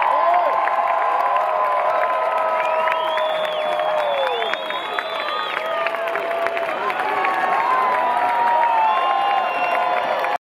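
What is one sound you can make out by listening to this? Drums pound loudly at a live concert, heard from within a large crowd.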